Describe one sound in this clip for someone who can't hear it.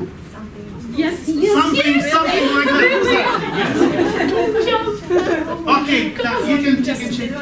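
A woman laughs and talks with animation.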